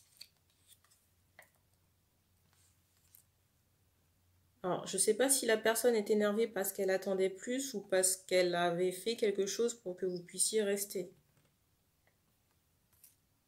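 Playing cards slide and tap softly on a wooden table.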